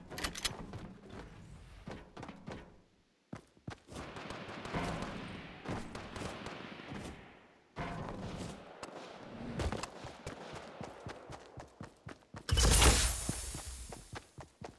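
Footsteps patter quickly across hard ground and metal.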